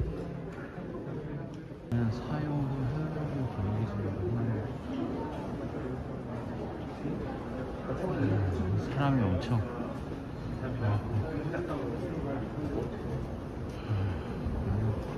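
Several men talk at once in a crowded indoor hall.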